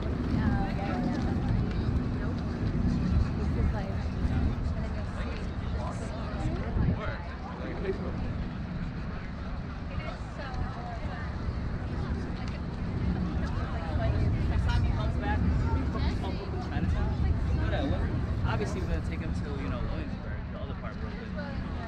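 Many people chatter nearby and in the distance.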